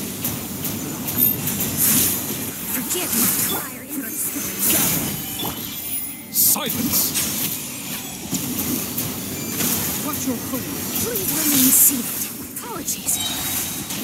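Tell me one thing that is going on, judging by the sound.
Sword slashes whoosh and crackle with bright electric bursts.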